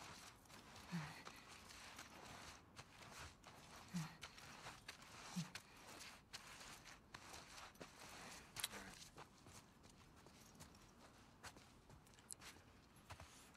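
A person crawls through grass with soft rustling.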